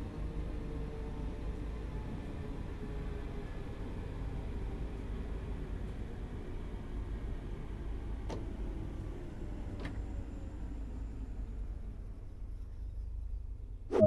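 A train rumbles along the tracks and slowly comes to a stop.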